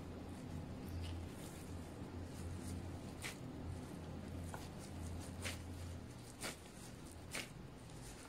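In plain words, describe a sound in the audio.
Plastic-gloved hands squeeze and pat minced meat.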